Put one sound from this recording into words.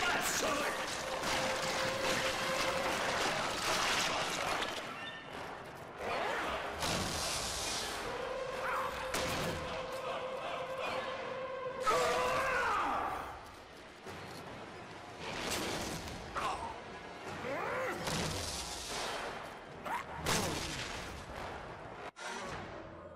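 A huge monster roars loudly.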